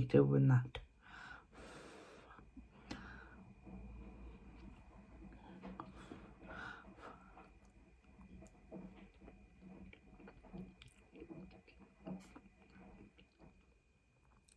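A woman chews and eats softly close to a microphone.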